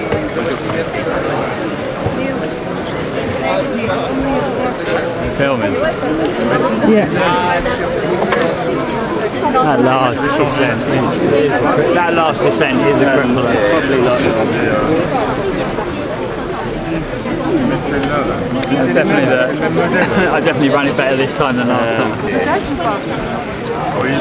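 A middle-aged man talks close by, calmly and with animation.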